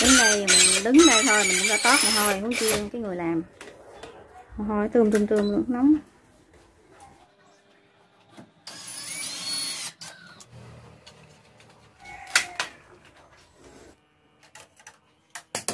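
A screwdriver scrapes and clicks against a wall socket.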